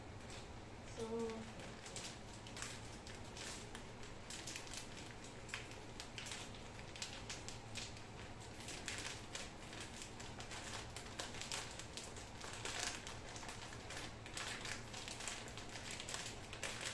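A plastic bag crinkles and rustles as hands squeeze it.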